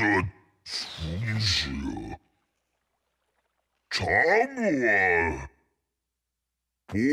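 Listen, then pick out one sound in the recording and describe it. A monster speaks in a deep, growling voice, close by.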